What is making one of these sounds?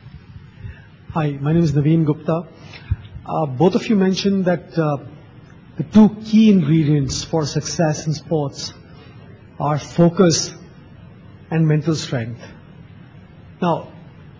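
A man asks a question through a handheld microphone, heard over loudspeakers.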